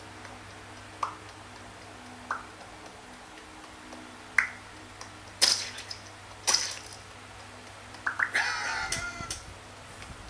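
A tablet game plays short popping and chiming sound effects.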